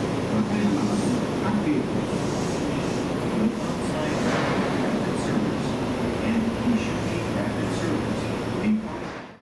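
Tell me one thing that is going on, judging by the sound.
An electric express train rumbles along the track in the distance.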